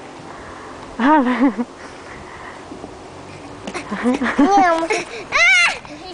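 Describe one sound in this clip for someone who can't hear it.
A young girl talks and squeals excitedly close by.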